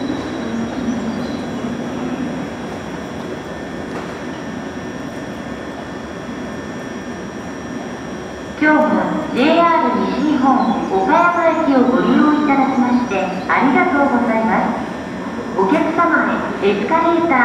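A train rumbles slowly along the tracks nearby.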